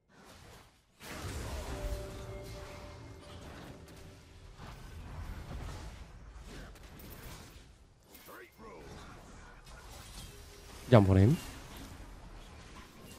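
Game spell blasts and clashing effects crackle in quick bursts.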